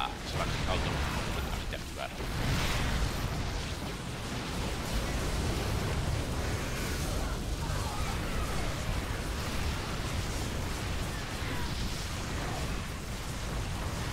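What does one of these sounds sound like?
A man talks close into a microphone with animation.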